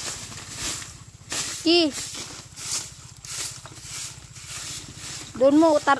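A broom sweeps with rhythmic scratchy strokes across dirt ground.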